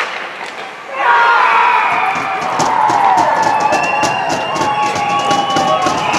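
A crowd cheers loudly in an echoing arena.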